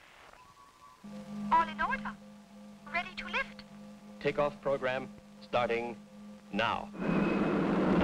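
A woman speaks through a loudspeaker.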